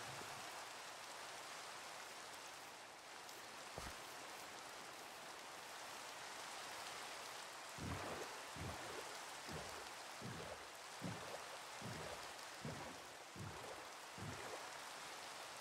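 Steady rain falls and patters on water.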